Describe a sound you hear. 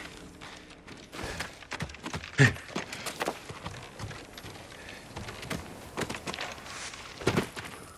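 Wooden ladder rungs creak and knock under climbing feet.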